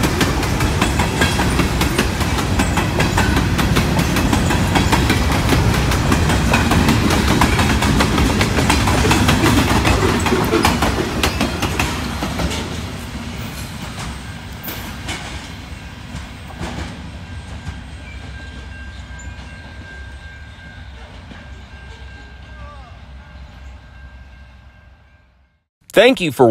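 A freight train rumbles and clatters past close by, then fades into the distance.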